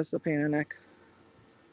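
A woman speaks calmly, close to a phone's microphone.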